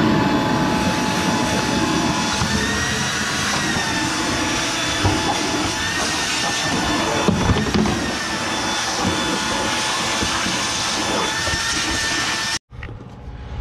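A vacuum cleaner hums and whirs loudly.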